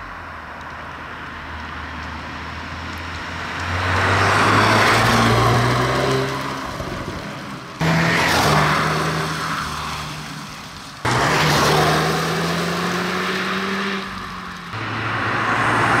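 A car engine roars as the car approaches and passes by.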